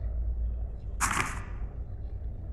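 A short menu sound swishes as a page turns.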